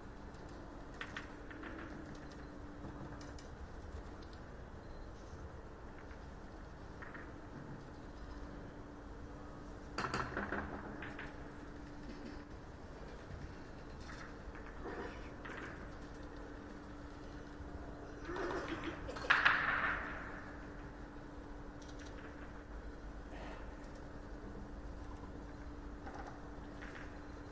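Snooker balls knock together with sharp clicks.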